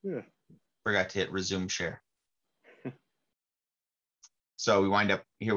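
A man explains calmly into a close microphone, with pauses.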